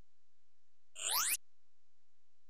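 A quick rising electronic jingle plays.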